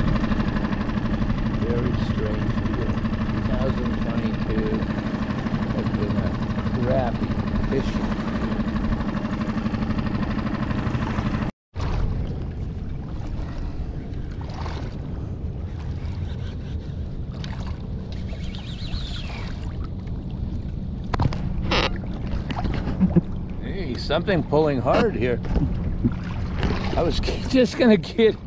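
Wind blows and water splashes steadily outdoors.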